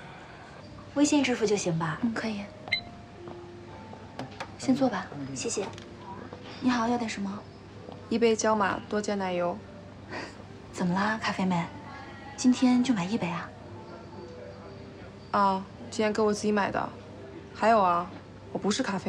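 Young women talk calmly nearby.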